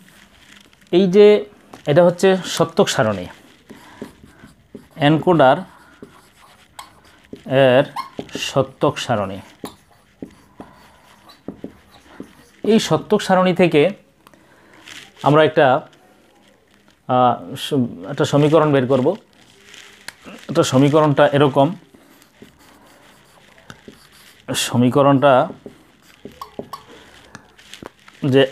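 A middle-aged man speaks calmly and clearly, as if explaining, close by.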